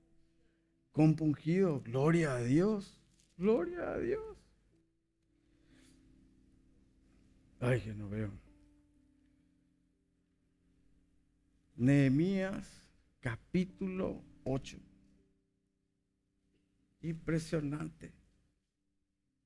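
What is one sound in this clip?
A man speaks slowly and calmly through a microphone, pausing between phrases.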